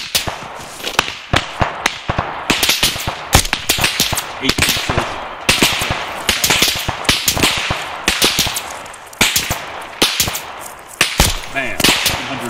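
Gunshots crack repeatedly and echo into the distance.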